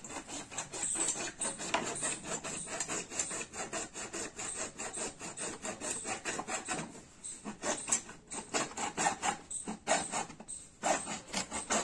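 A hand scrapes rapidly and steadily against a plastic pipe.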